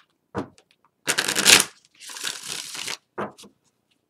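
A deck of cards is shuffled with a riffling, rustling sound.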